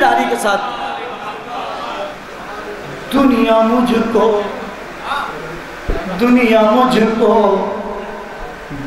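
A young man recites with feeling into a microphone, heard through loudspeakers.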